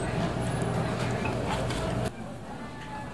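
A young woman bites into crusty pizza and chews noisily.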